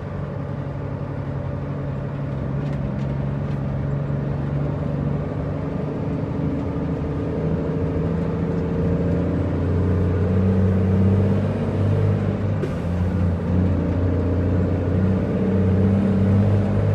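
A truck's diesel engine rumbles steadily and grows louder as it pulls away.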